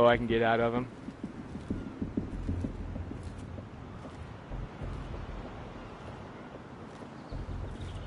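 Footsteps tread slowly on hard stairs.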